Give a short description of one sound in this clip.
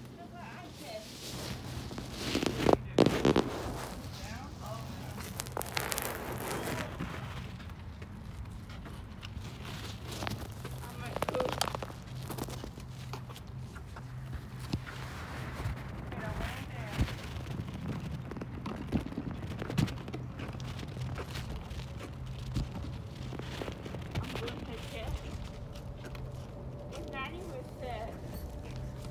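Cloth rustles and rubs against the microphone.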